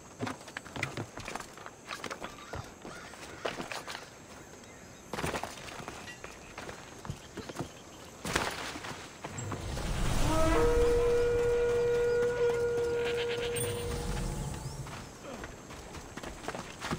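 Footsteps crunch quickly over tiles and sand.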